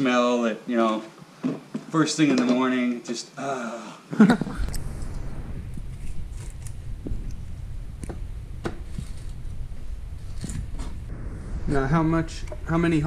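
An older man talks calmly up close.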